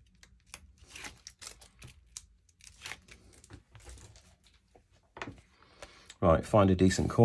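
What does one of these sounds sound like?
Paper rustles and crinkles softly as it is peeled and handled.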